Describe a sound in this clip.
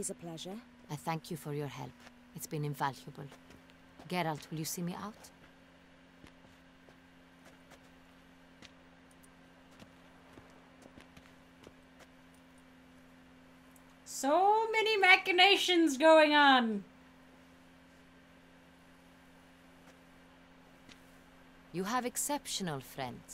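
A woman speaks calmly and politely.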